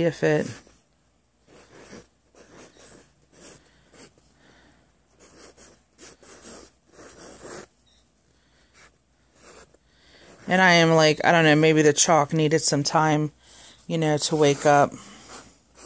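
Chalk scrapes and taps on a board.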